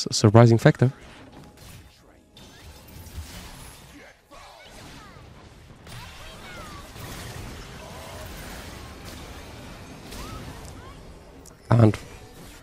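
Game sound effects clash and whoosh during a fight.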